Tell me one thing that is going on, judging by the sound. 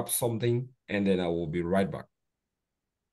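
A man speaks over an online call.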